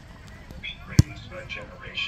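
A foot kicks a soccer ball with a sharp thump.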